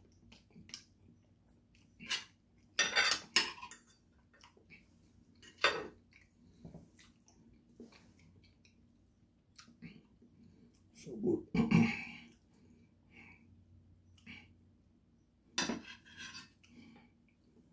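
A spoon and fork clink against a plate.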